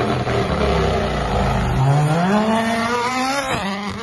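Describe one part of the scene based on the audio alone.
A rally car's engine roars up close as the car speeds past.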